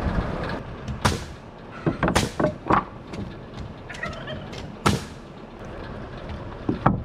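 A hammer knocks sharply on wood.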